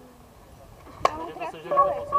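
A bat cracks sharply against a ball outdoors.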